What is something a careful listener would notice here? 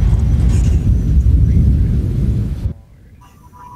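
Strong wind and rain roar loudly outdoors.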